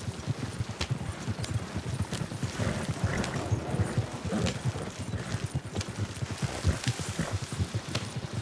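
A horse's hooves thud on grassy ground.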